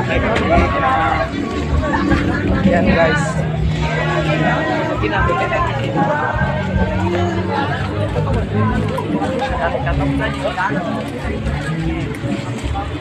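A crowd of men and women talks and shouts all around, outdoors.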